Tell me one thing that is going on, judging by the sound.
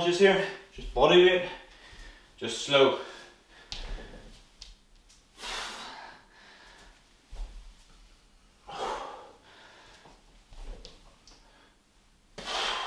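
Feet thud softly on an exercise mat.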